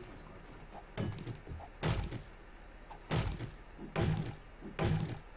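A hammer strikes wood with repeated knocks.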